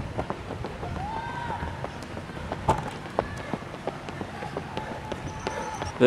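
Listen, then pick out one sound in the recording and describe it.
Running shoes slap on pavement as runners pass close by.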